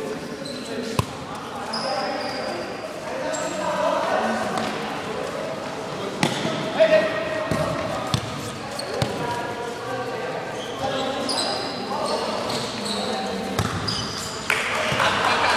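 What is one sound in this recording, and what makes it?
A ball thuds against a hard floor and is kicked.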